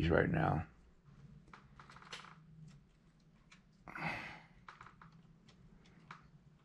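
Fingers softly rub and press clay.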